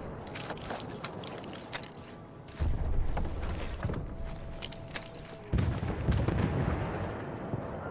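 A wooden crate lid creaks open and bangs.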